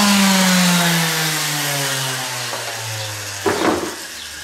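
A power tool whines and slowly winds down.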